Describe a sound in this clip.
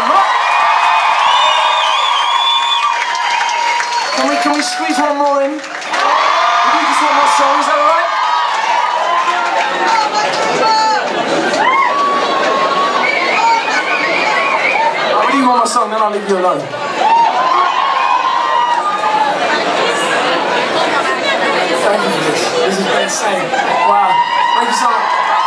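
A man sings loudly through loudspeakers in a large echoing hall.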